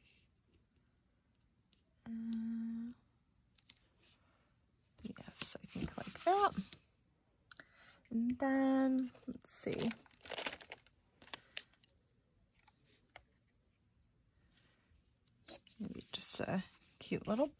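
A small tool scrapes lightly on paper.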